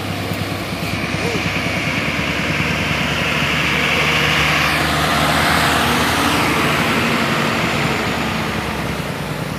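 A second heavy truck's engine roars as it passes close by.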